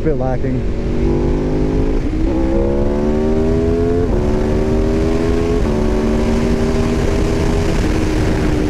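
A motorcycle engine roars and climbs in pitch as it shifts up through the gears.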